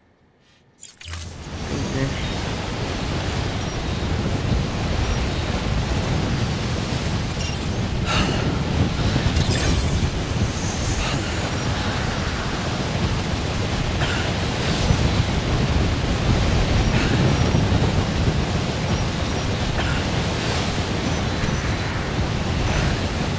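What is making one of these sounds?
Strong wind roars steadily through a snowstorm.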